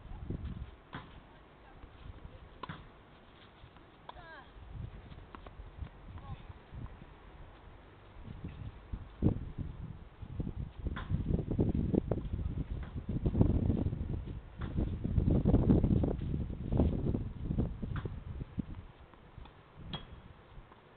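A tennis racket strikes a ball a few times at a distance.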